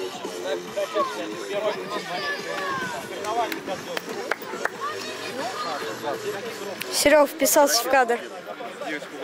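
Children and young men chatter and call out nearby outdoors.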